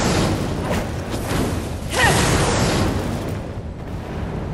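Fiery whip lashes crackle and whoosh.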